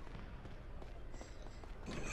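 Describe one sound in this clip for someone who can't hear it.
Footsteps run quickly across wooden boards.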